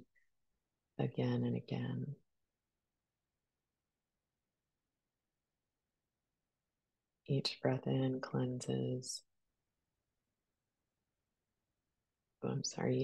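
A middle-aged woman speaks calmly and close up, in short phrases with pauses.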